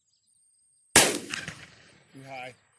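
A gunshot cracks loudly outdoors.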